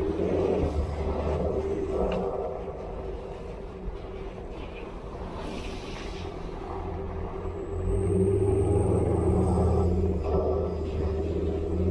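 Tyres rumble and crunch over a bumpy dirt track.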